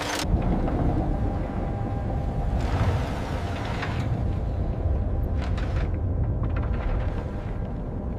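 Air bubbles gurgle underwater.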